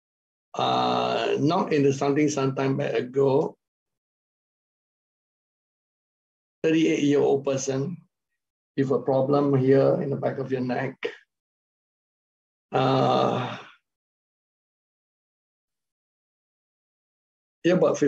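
A middle-aged man speaks with animation through an online call, with pauses.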